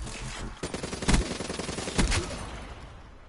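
Sharp gunshots crack out in quick succession.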